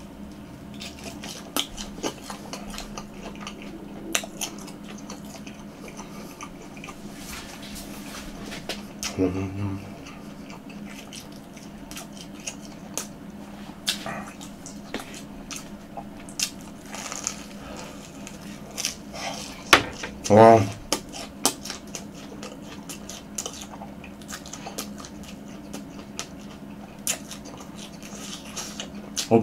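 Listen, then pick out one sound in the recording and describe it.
A young man chews and crunches food close to a microphone.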